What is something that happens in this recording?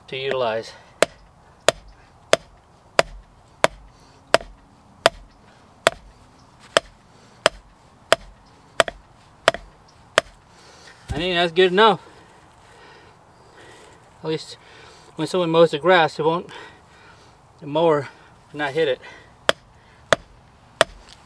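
A hammer strikes a metal stake with sharp, regular ringing taps.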